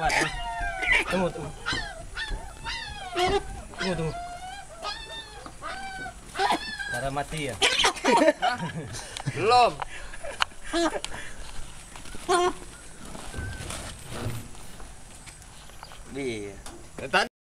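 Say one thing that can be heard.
A rooster squawks and clucks.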